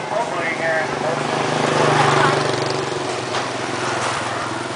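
A motorbike engine hums past nearby.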